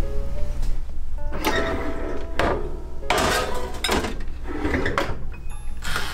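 An oven door creaks open and thuds shut.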